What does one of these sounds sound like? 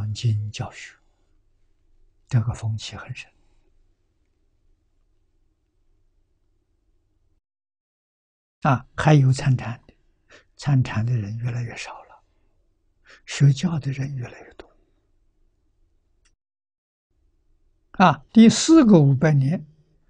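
An elderly man speaks calmly in short phrases with long pauses, close to a microphone.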